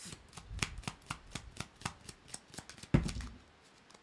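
Playing cards riffle and flick rapidly.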